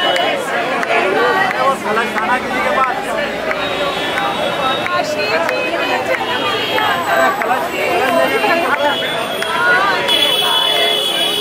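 A crowd of men and women chatter and chant loudly nearby, outdoors.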